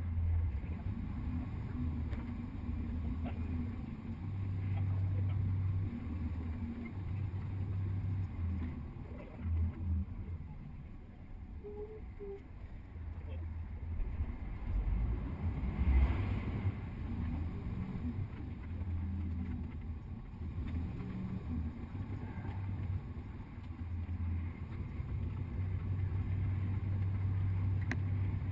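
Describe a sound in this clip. A vehicle's engine rumbles steadily as it drives along a road.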